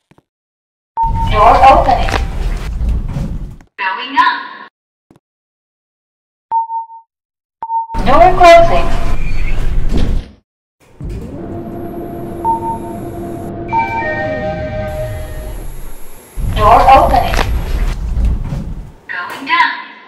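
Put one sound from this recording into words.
Elevator doors slide open and shut with a rumble.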